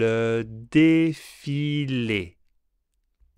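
A man speaks clearly and slowly into a close microphone, pronouncing words.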